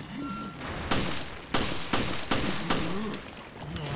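A pistol fires several sharp shots in quick succession.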